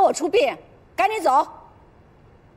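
A woman exclaims sharply, close by.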